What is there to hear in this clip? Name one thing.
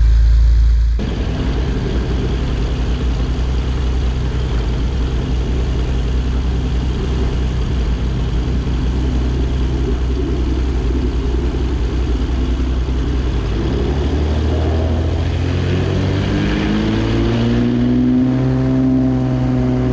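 A small plane's propeller engine drones loudly close by.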